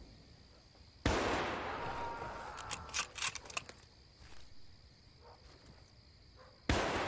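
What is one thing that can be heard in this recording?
A sniper rifle fires a loud shot that echoes away.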